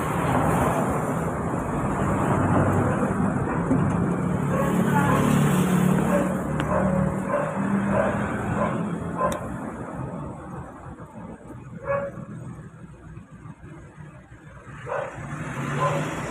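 A heavy truck engine idles and rumbles nearby.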